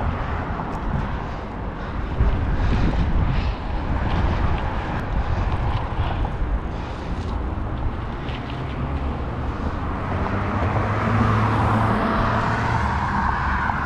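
Wind rushes loudly over a microphone outdoors.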